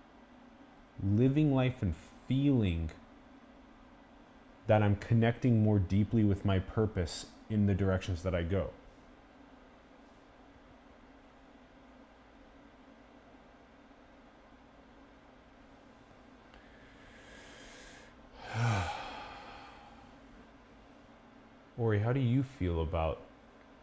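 A young man speaks calmly and with animation, close by.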